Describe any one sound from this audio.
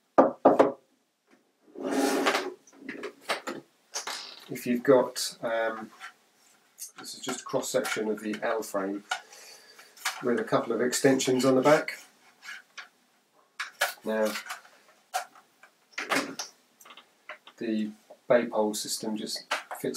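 Plastic parts clack together as a man handles them.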